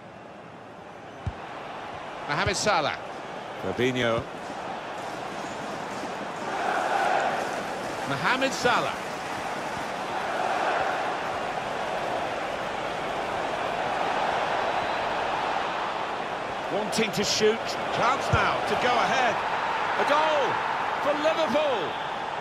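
A large crowd cheers and chants steadily, swelling louder toward the end.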